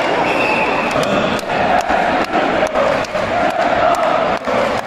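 A large crowd claps in rhythm.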